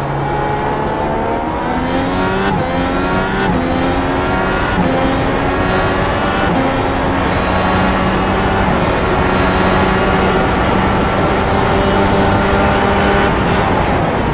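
A racing car engine revs up through the gears with rising pitch.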